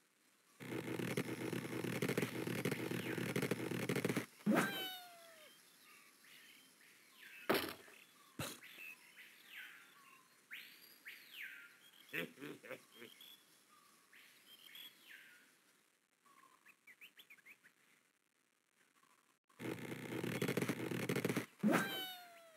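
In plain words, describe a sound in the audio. A slingshot band creaks as it stretches.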